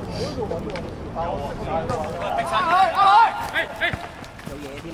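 Young men shout to each other on an outdoor court.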